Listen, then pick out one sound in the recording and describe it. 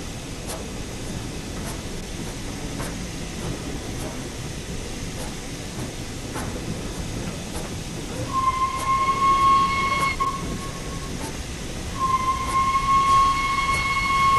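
A steam locomotive chuffs slowly and steadily.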